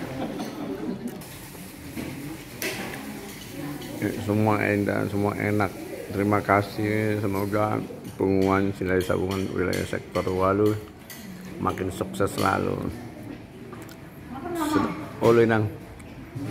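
Spoons clink and scrape against plates.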